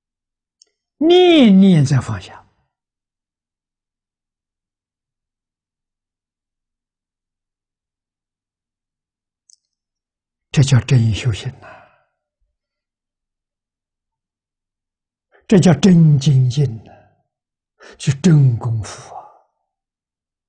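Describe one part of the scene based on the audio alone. An elderly man speaks calmly and warmly into a microphone, in short phrases with long pauses.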